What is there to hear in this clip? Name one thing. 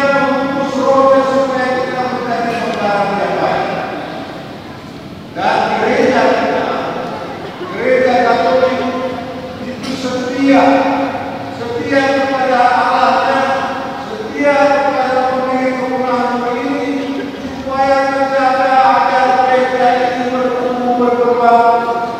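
A large congregation sings a slow hymn together in a big echoing hall.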